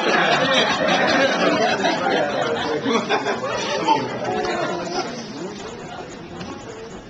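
A crowd of guests chatters and cheers in a room.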